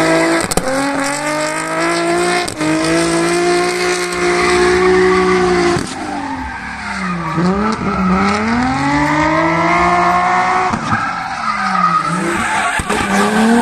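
A car engine revs hard and loud, rising and falling as the car drifts.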